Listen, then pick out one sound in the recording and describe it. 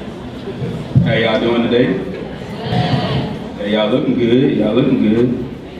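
A young man speaks clearly into a microphone.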